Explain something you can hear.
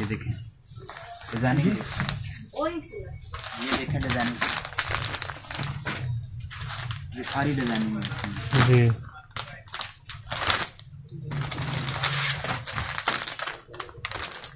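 Plastic packaging crinkles and rustles as it is handled.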